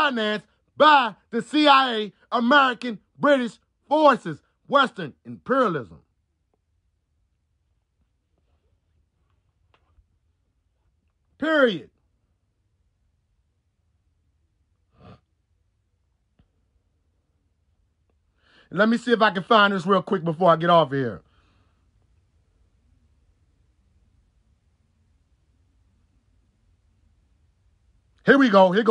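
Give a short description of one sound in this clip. A young man sings loudly and with animation, close by, in short bursts.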